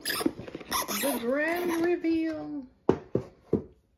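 A cardboard box lid is lifted off.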